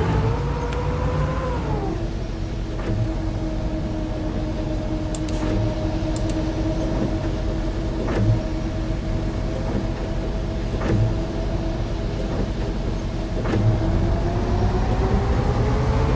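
A bus engine hums steadily, dropping in pitch early on and rising again near the end.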